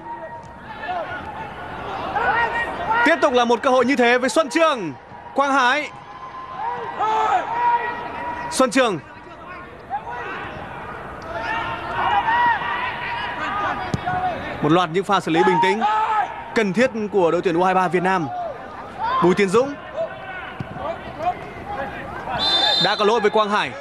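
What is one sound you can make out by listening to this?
A large stadium crowd chants and cheers.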